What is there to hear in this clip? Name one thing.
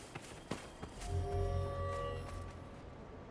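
A chime rings out with a low hum.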